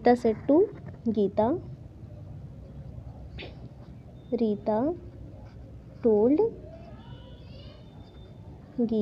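A felt-tip marker squeaks and scratches faintly on paper.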